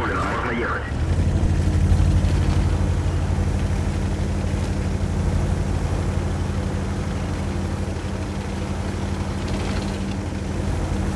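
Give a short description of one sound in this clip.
A heavy tank's engine rumbles as it drives.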